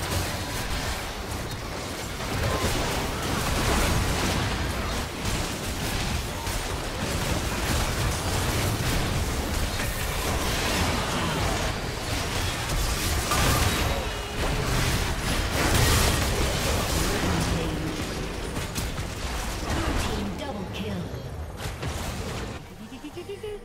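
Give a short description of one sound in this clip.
Magic blasts and clashing blows crackle rapidly in a busy fight.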